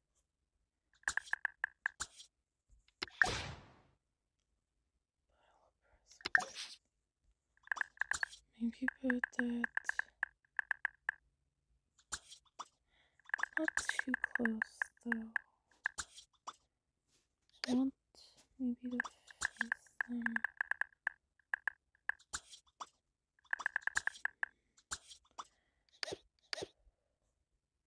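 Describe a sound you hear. Short electronic chimes and clicks sound from a mobile game.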